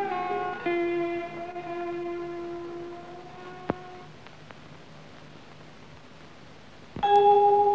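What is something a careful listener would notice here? A woman sings long, held notes.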